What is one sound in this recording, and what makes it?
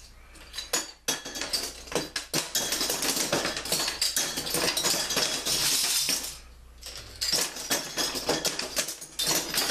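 Metal bottle caps clink and rattle as they drop into a wooden box.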